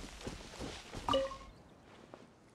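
A bright magical chime rings out with a shimmering whoosh.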